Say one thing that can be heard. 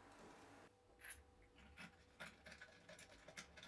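Hands tap and knock lightly on a wooden box.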